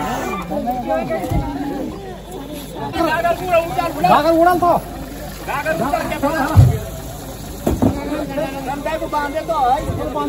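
A group of women sing together close by.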